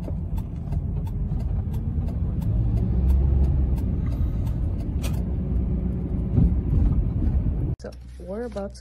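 A car engine rumbles steadily as a car drives along.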